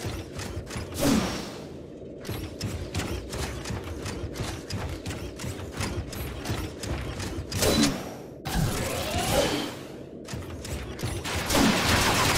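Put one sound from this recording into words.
Heavy metal footsteps clank in a quick, steady rhythm.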